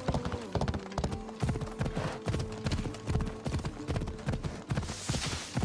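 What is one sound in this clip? Hooves gallop in a quick, steady rhythm on the ground.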